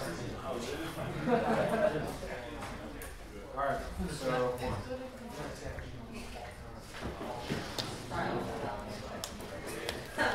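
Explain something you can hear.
Small plastic pieces tap and click on a table.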